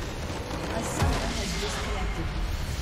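A base structure blows up with a loud blast.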